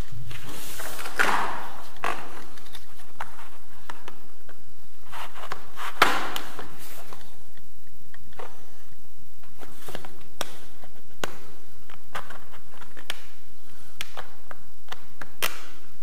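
Plastic trim clicks and knocks against a wall.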